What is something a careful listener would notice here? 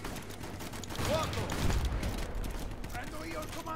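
A large tank gun fires with a deep boom.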